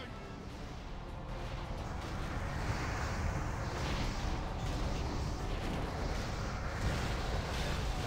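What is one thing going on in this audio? Magic spells crackle and burst in a busy fantasy battle.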